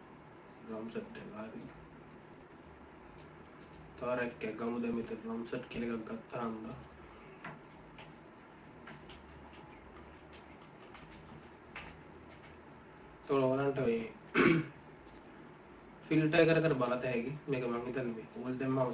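A young man talks calmly into a nearby microphone, in short bursts.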